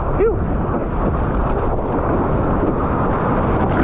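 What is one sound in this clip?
A wave breaks and crashes close by.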